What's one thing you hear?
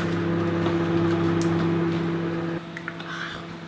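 A microwave oven hums steadily.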